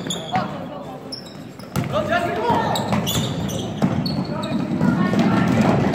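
Spectators and players shout and call out in a large echoing hall.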